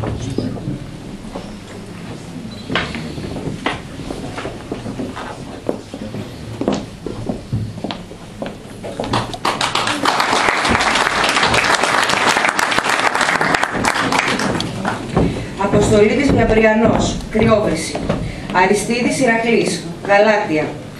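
A woman speaks calmly through a microphone in an echoing room.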